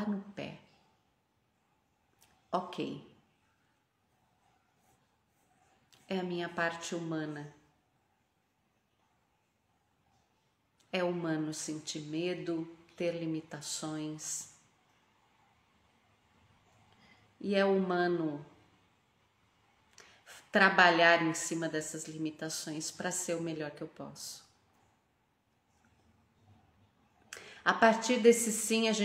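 A woman talks calmly and close up, in short bursts with pauses.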